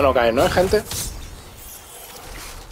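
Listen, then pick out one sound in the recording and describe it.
A blade swishes through the air with a magical whoosh.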